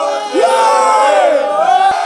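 A young man shouts in celebration.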